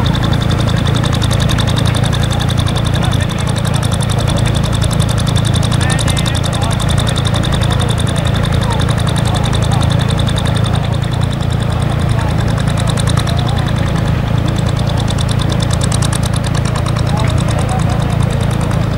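A tractor engine chugs steadily as it ploughs.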